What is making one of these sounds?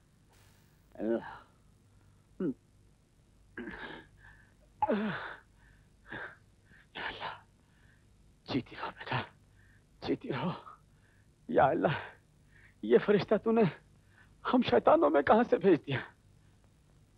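An elderly man speaks with emotion, close by.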